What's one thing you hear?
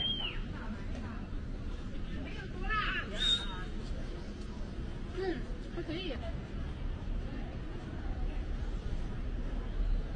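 A low street rumble carries on outdoors.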